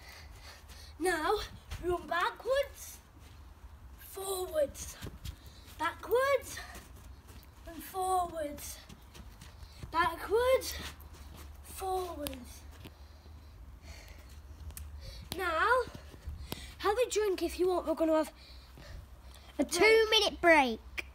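A young boy talks with animation close by, outdoors.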